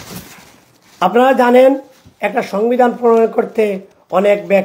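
A man recites loudly in a drawn-out, melodic voice through a microphone.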